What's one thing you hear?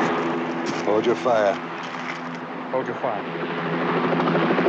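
A man speaks over a radio handset.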